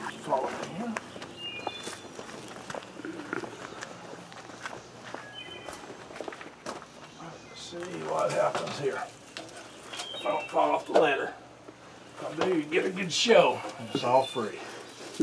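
Dry stalks rustle and crackle close by.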